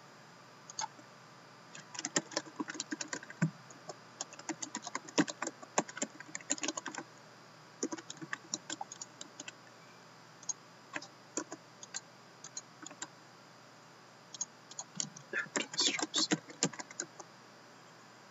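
Playing cards tap and slide on a soft mat.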